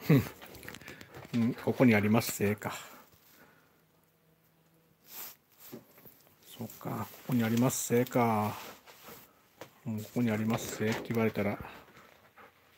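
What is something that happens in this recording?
A dog whines and yelps up close.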